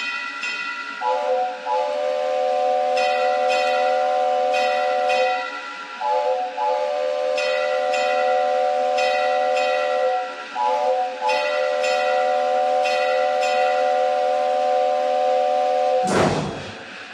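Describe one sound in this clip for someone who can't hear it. A steam whistle blows in long, loud blasts.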